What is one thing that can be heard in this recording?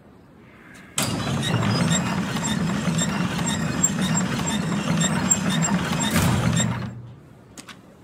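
A heavy metal bin scrapes and grinds across the ground as it is pushed.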